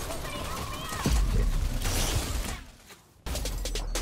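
An explosion booms with a roar of fire.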